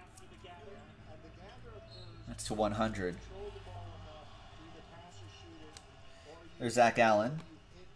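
Trading cards shuffle and rustle in hands.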